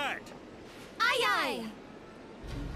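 Two young women call out together cheerfully.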